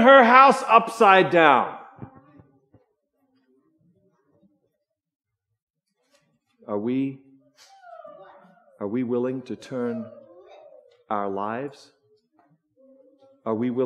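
A middle-aged man speaks with animation through a microphone in a large room, pausing between phrases.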